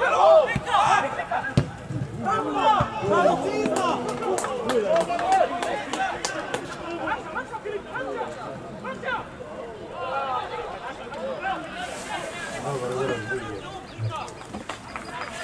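Men shout and call to each other across an open field outdoors.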